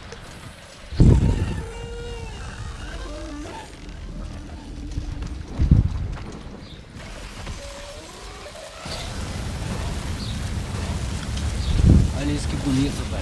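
Ice cracks and shatters with loud booms.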